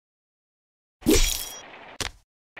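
A blade swishes sharply through the air.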